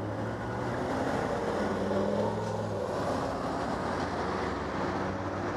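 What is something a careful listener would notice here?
A pickup truck drives past close by.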